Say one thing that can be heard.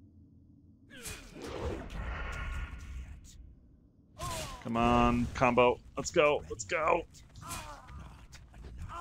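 Swords clash with sharp metallic hits.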